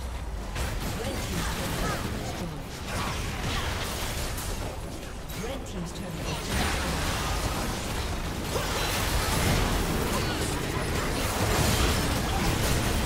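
Spell blasts and impacts crackle and boom in a busy game battle.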